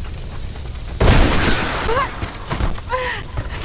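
A wooden structure collapses with a loud crash.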